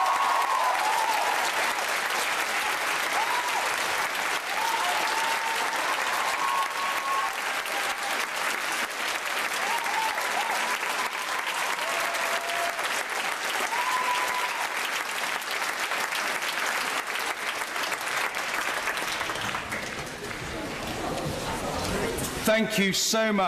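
A large crowd applauds and cheers in a large echoing hall.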